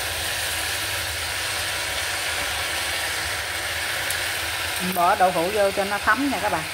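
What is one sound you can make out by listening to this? Vegetables sizzle softly in a hot pan.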